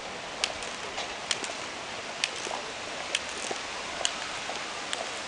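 Footsteps tap on hard pavement at a steady walking pace.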